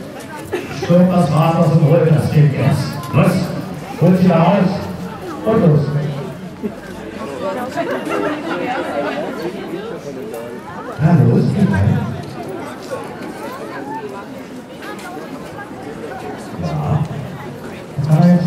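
A man speaks with animation into a microphone, heard through a loudspeaker outdoors.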